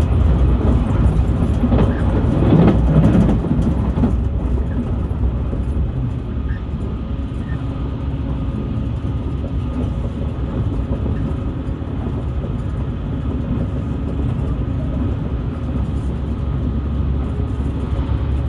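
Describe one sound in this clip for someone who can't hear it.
A car engine rumbles steadily nearby.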